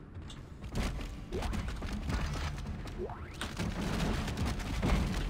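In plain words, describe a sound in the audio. Heavy blows thud.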